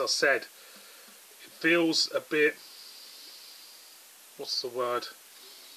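Beer pours from a can into a glass and fizzes.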